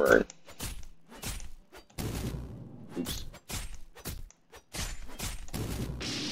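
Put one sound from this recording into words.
Sharp punches and blows land in quick succession.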